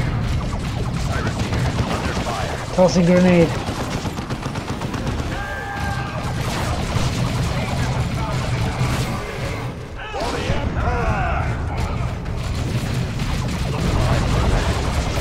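Gunfire and blasts rattle steadily in a battle.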